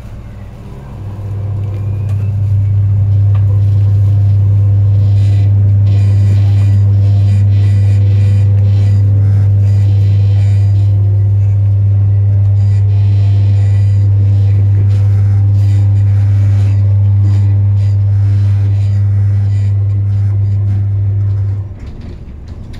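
Another train passes close by with a loud, deep hum.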